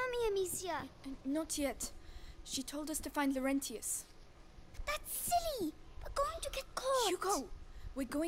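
A young boy speaks with worry.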